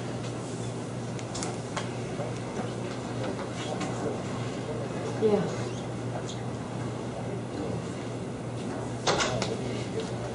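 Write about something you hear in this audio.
A man speaks calmly at a distance in a small room.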